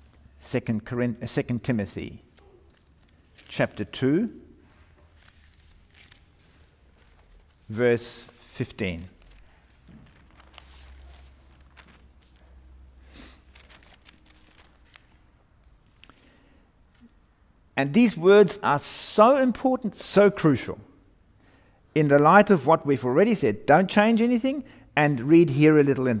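A middle-aged man speaks calmly and deliberately, close to a microphone, with pauses.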